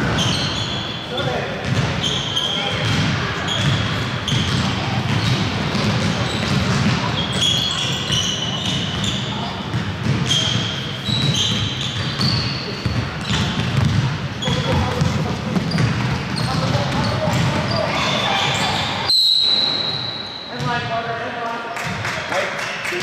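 Basketballs bounce with hollow thuds.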